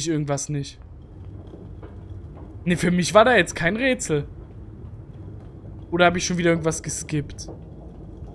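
A young man talks into a close microphone in short, animated bursts.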